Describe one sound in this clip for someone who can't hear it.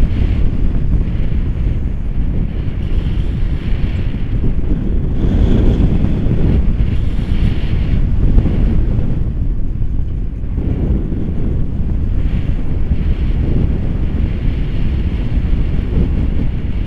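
Strong wind roars and buffets loudly against the microphone.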